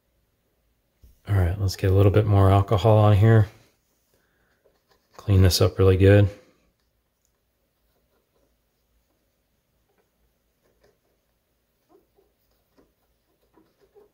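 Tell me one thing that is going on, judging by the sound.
A small plastic tool clicks and scrapes against the parts inside a laptop.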